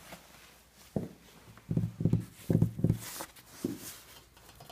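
Fingertips tap on wood.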